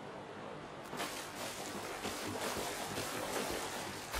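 Waves wash softly against a shore.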